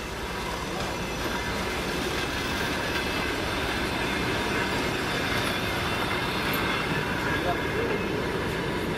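A train rolls slowly past with a steady rumble.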